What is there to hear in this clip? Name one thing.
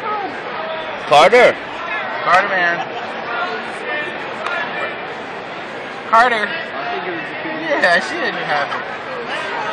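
Nearby adult voices talk and exclaim loudly now and then.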